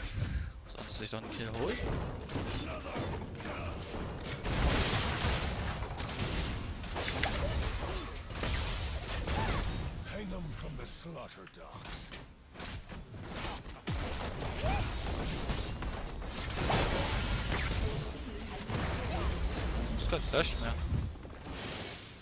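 Spell blasts, zaps and impacts clash in a video game battle.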